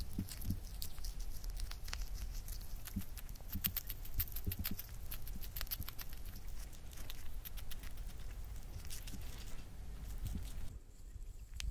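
A hamster nibbles and crunches on grass close to a microphone.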